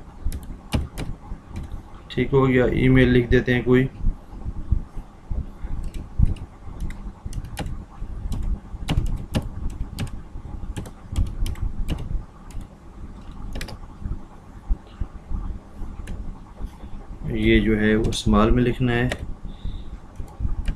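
Keys on a computer keyboard click in quick bursts.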